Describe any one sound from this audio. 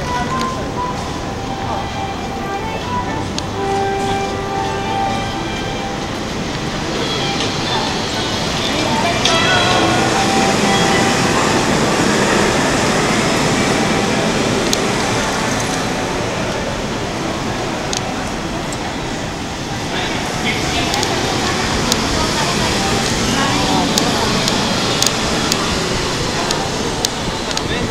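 A crowd of people chatters in a busy outdoor street.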